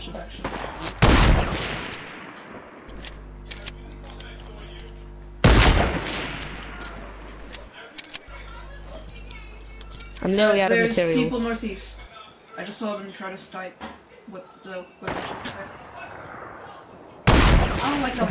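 A rifle fires loud, sharp shots that echo away.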